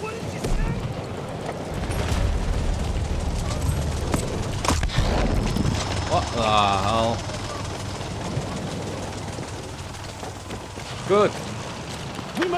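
Heavy gunfire and explosions rumble in the distance.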